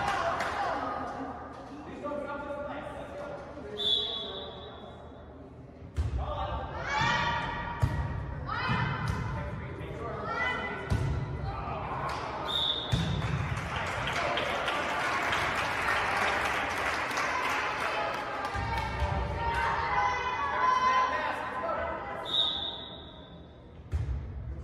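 Spectators cheer and chatter.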